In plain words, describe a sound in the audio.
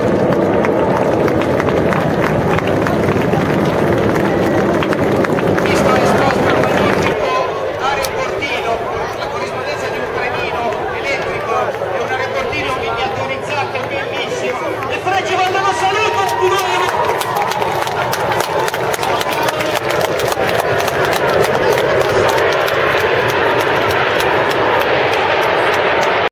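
Jet planes roar overhead.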